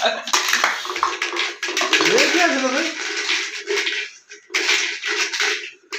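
Dice rattle in a plastic jug.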